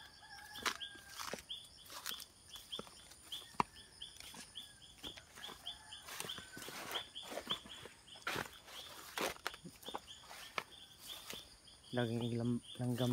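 Footsteps rustle through grass and dry leaves.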